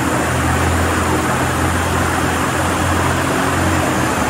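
An ice resurfacing machine's engine hums steadily.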